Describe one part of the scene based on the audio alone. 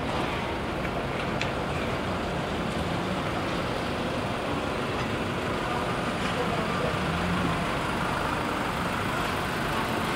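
City traffic hums steadily in the distance outdoors.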